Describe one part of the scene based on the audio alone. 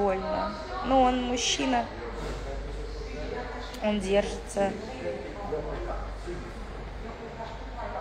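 A young woman speaks close to a phone microphone, casually and with pauses.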